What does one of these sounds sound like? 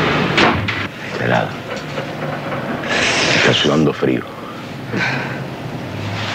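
A man speaks softly close by.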